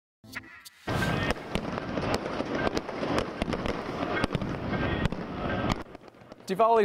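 Fireworks crackle and pop in the sky.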